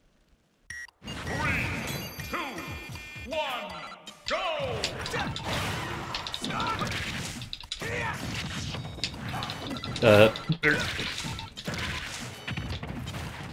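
Fighting game sound effects thump and clash in quick bursts.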